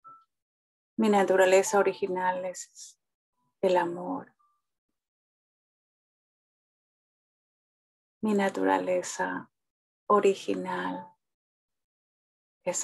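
A middle-aged woman speaks calmly over an online call, in short phrases with pauses.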